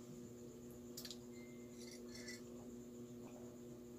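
A man sips a hot drink from a mug.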